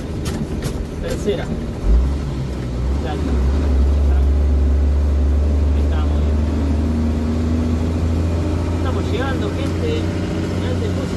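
A truck's engine rumbles loudly, revving up as the truck drives.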